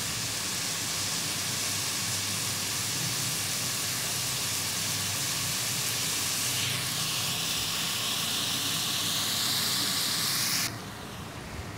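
Onions sizzle in hot oil.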